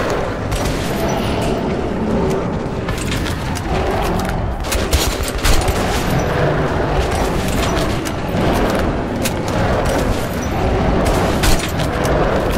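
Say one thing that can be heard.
A gun fires in short bursts of loud shots.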